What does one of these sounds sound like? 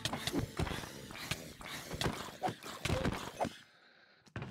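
Quick punchy hit sounds land again and again in a fight.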